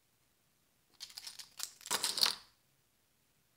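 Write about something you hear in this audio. Plastic tokens clatter onto a hard surface.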